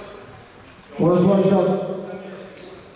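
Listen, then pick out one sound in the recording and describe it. A man shouts loudly in an echoing hall.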